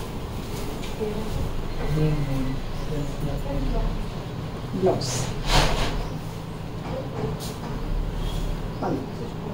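Fabric rustles as it is unfolded and handled.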